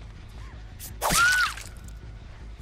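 A blade swings and strikes with a sharp swish.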